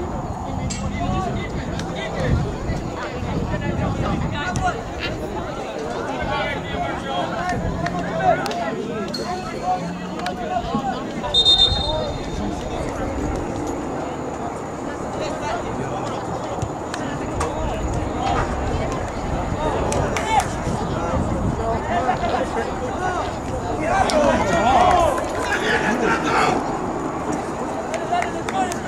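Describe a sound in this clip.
Spectators chatter and call out across an open field.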